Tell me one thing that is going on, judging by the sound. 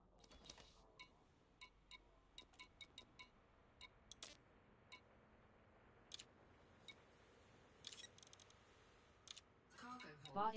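Short electronic menu beeps click again and again.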